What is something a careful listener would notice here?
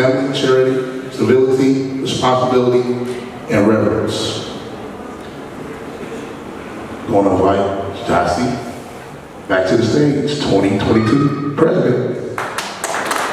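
A young man speaks calmly into a microphone through loudspeakers in an echoing hall.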